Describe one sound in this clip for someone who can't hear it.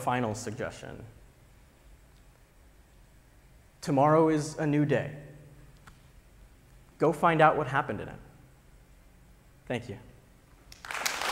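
A man speaks into a microphone with pauses, his voice filling a large hall.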